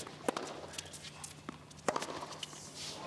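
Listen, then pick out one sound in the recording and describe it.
A tennis ball is struck sharply with a racket.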